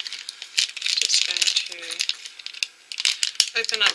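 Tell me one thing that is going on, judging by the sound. A foil wrapper crackles as it is torn open.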